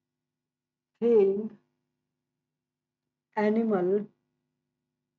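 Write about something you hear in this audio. A young man speaks clearly in short phrases, as if dictating.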